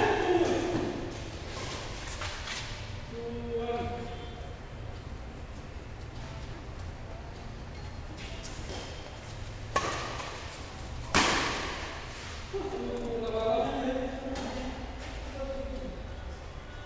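Men call out to each other during play in a large echoing hall.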